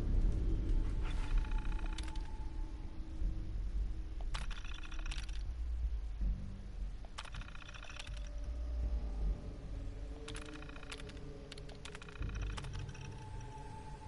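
A computer terminal beeps and clicks as text prints.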